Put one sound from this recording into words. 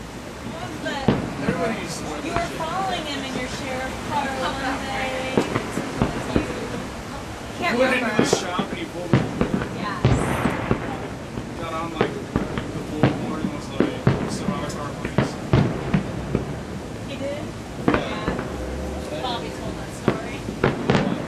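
Fireworks boom in the distance.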